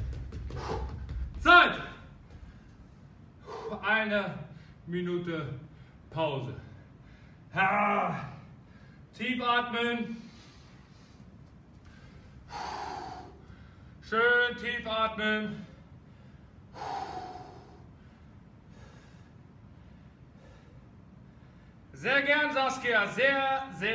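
A man speaks with animation, pausing between phrases.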